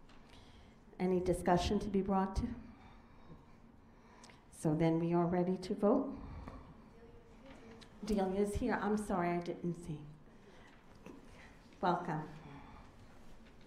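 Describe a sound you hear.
A middle-aged woman speaks into a microphone over loudspeakers in a large echoing room, in short bursts with pauses.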